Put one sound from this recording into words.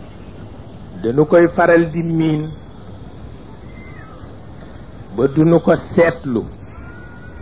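An elderly man speaks slowly into a microphone, with pauses between phrases.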